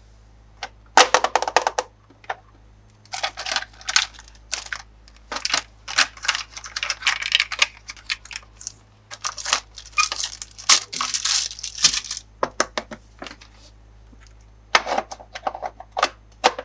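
Plastic parts clatter and knock together.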